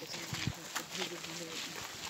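Several men and women talk casually nearby outdoors.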